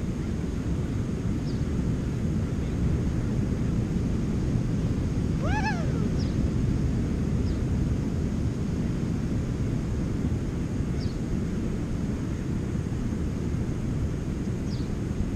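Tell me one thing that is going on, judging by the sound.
Wind blows steadily and rumbles against the microphone outdoors.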